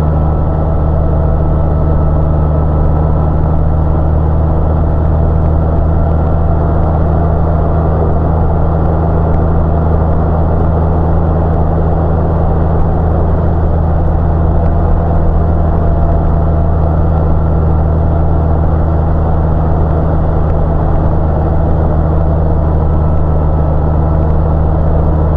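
A motorcycle engine hums steadily at a low pitch while riding.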